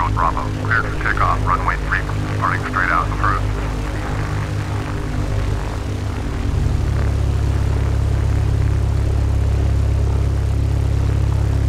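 A small propeller airplane engine drones steadily and then revs up louder.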